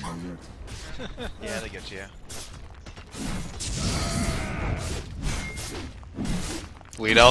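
Game battle effects clash, whoosh and crackle.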